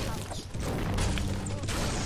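A pickaxe strikes a wall with sharp knocks.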